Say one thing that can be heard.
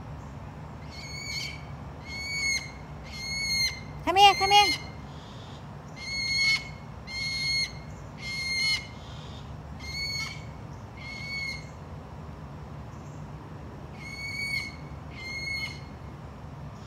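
A bird squawks repeatedly nearby.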